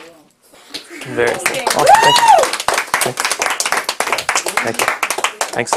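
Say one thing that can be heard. A small group claps hands steadily.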